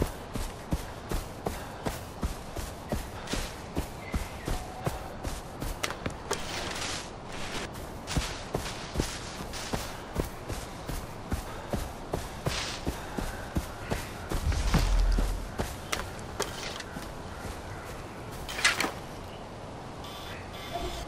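Footsteps rustle steadily through undergrowth.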